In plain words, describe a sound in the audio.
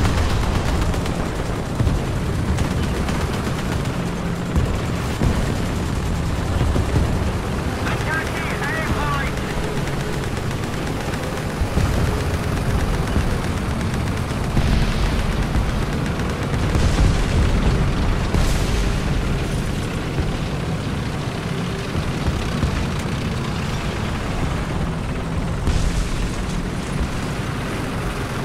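Tank tracks clank over the ground.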